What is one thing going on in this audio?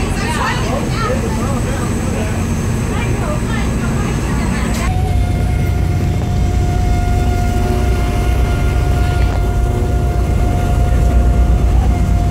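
A boat engine rumbles steadily nearby.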